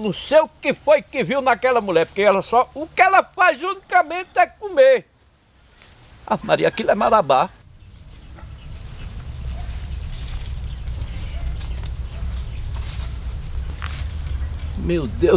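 A middle-aged man speaks close by with animation.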